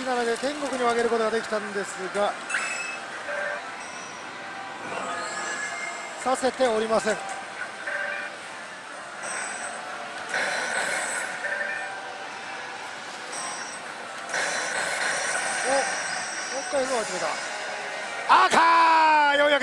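A slot machine plays electronic jingles and effects.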